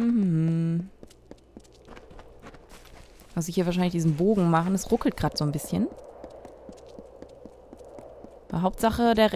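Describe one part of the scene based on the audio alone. Footsteps run quickly over stone and grass.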